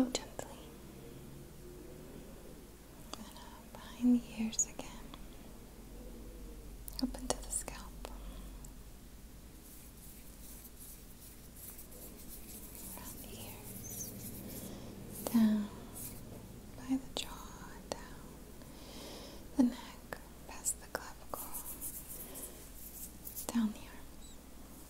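Hands rustle softly close to a microphone.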